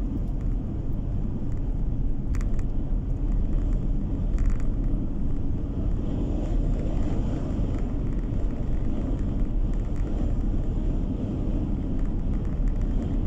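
A car engine hums steadily inside the car as it drives along a road.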